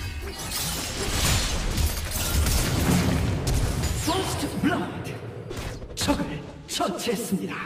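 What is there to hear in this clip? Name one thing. Game combat effects clash and burst in quick succession.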